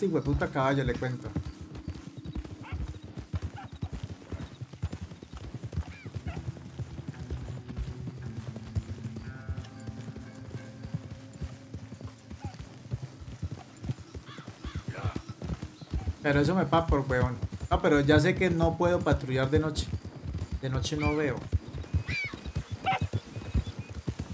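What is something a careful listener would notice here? Horse hooves thud steadily on grass.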